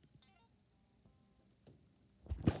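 A video game plays short electronic menu beeps.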